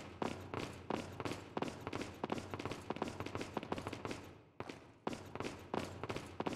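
Footsteps tap quickly on a stone floor.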